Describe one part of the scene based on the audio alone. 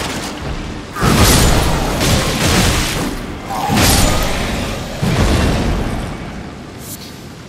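Heavy weapon blows land with sharp thuds.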